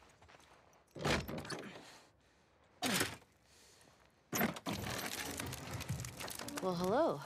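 A heavy wooden door scrapes and creaks open.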